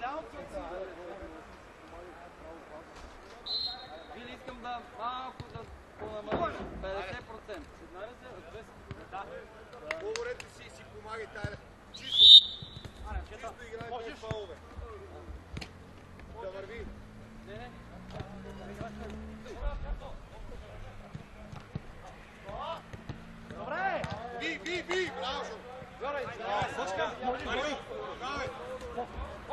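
Men shout and call to each other across an open outdoor field.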